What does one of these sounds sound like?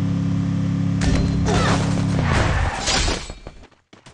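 A vehicle crashes into a wall with a loud bang.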